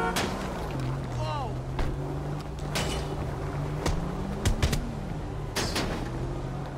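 A baseball bat strikes a car with sharp metallic bangs.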